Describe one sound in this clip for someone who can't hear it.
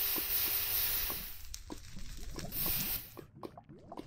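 Fire crackles and pops.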